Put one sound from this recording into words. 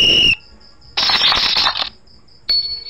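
Playing cards swish as they are dealt.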